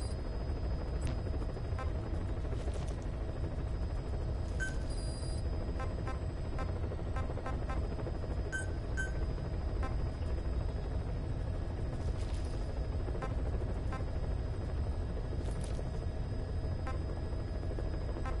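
Game menu sounds beep and click as options are chosen.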